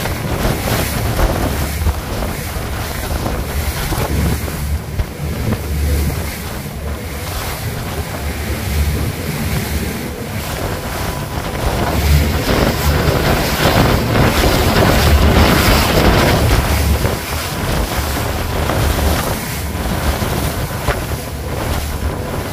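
Wind roars and buffets loudly outdoors.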